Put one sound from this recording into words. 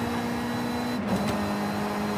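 A racing car shifts up a gear with a brief dip in engine pitch.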